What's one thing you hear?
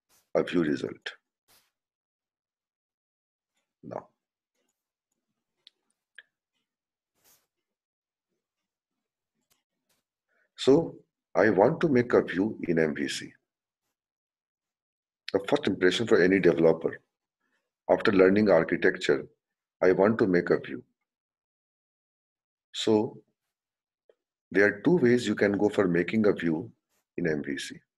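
A man explains calmly through a microphone, in short bursts with pauses.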